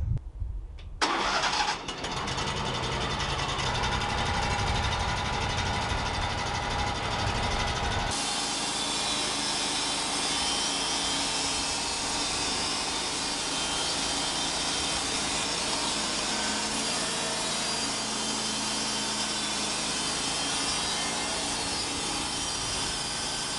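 A band saw blade whines as it cuts through a log.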